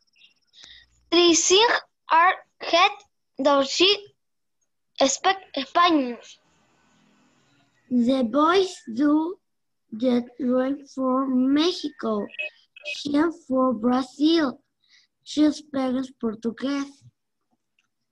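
A young girl speaks slowly over an online call.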